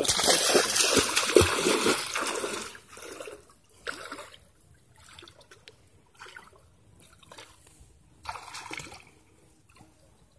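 A child splashes through shallow water.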